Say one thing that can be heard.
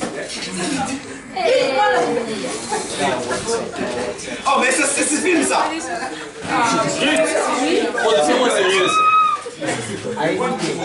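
Young people laugh loudly.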